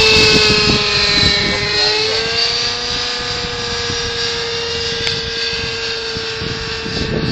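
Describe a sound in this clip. A model plane's engine whines steadily overhead.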